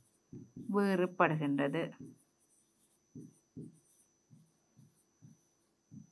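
A marker scratches and taps on a whiteboard.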